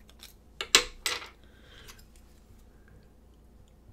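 A plastic magnifier clicks as hands handle it close by.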